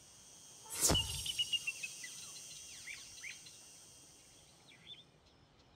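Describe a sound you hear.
Bright, tinkling chimes sparkle and slowly fade.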